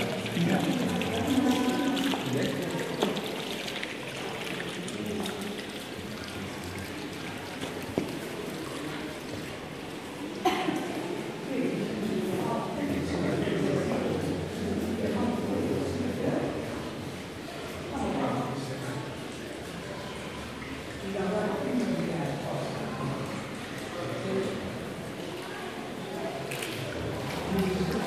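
Several adults chatter nearby in a large echoing hall.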